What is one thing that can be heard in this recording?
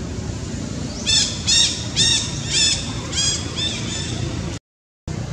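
A baby macaque cries out in shrill, repeated screams.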